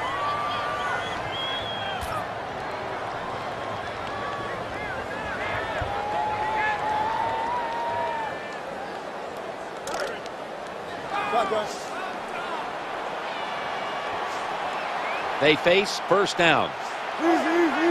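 A large crowd cheers and whistles throughout.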